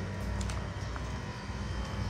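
Footsteps tap lightly on a stone path.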